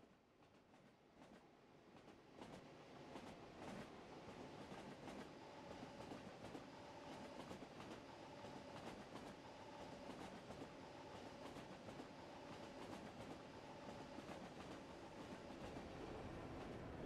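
Train wheels clatter rhythmically over the rail joints.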